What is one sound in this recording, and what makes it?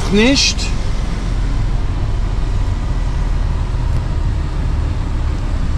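A truck engine rumbles low and steady inside the cab.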